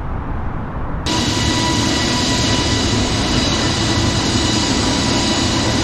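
Jet engines roar loudly with a high whine.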